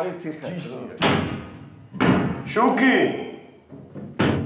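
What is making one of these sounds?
A metal door hatch slides and clanks.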